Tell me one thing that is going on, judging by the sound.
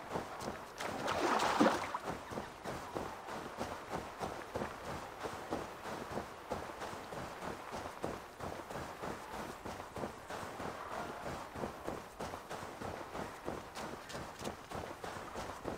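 Footsteps run quickly through tall, rustling grass.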